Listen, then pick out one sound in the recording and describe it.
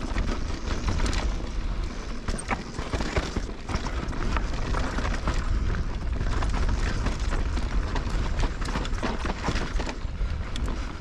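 Bicycle tyres crunch and rattle over a dry dirt trail.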